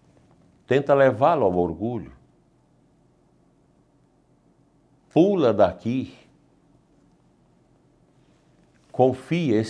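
An elderly man speaks calmly and clearly into a microphone, pausing between phrases.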